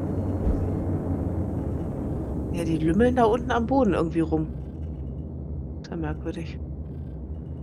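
An aircraft engine hums with a steady low drone.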